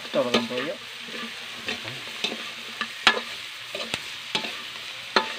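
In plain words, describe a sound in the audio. A metal spatula scrapes and clinks against a pan.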